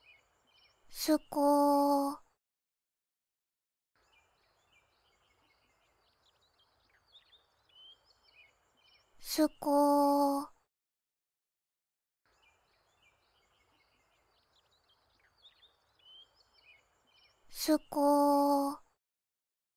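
A young girl says a short word in a high, sing-song voice, again and again.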